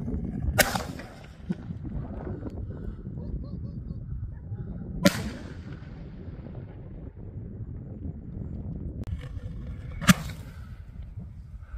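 A firework rocket whooshes up into the sky.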